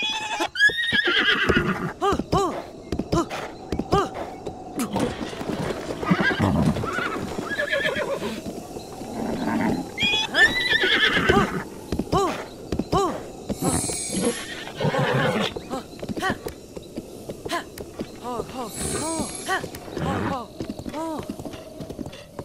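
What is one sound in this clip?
A horse's hooves thud in a rapid gallop over the ground.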